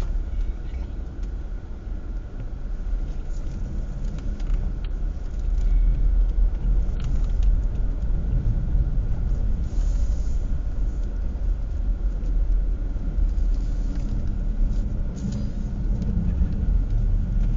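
A car engine hums with a low road rumble from inside the car.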